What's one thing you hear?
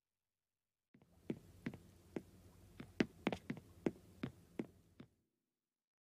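A game character's cartoon-like footsteps tap along a stone path.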